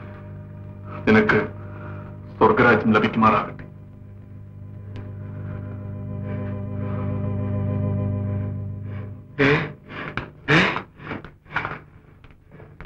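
A man speaks forcefully.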